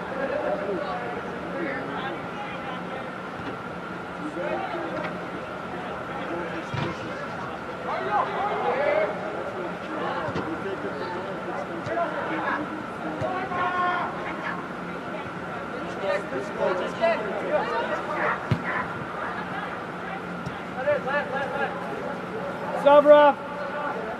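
Young men shout and call to each other across a large echoing hall.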